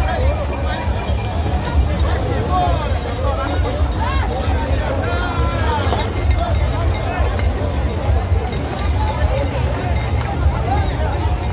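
A large crowd of men and women shouts and chatters outdoors.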